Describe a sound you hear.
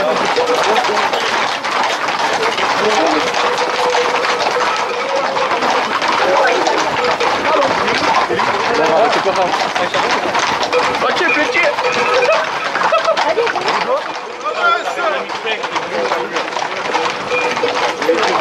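A crowd of men talks and shouts outdoors.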